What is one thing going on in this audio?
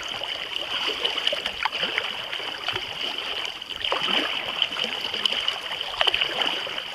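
Small waves lap and splash close by.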